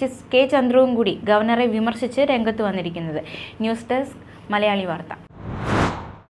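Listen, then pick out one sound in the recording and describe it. A young woman reads out the news calmly into a microphone.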